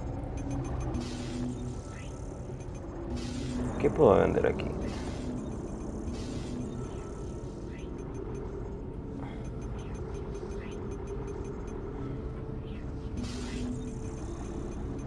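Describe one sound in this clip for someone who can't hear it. Game menu clicks and beeps sound softly.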